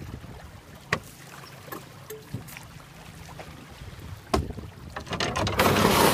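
Water laps gently against a boat hull.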